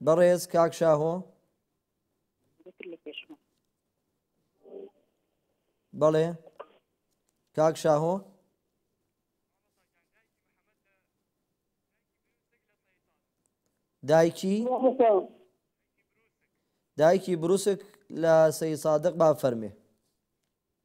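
A man chants in a melodic voice into a microphone, in short phrases with pauses.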